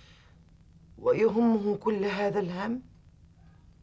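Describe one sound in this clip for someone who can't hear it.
A middle-aged woman speaks with emotion, close by.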